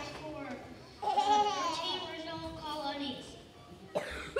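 A young child speaks clearly into a microphone in a large hall.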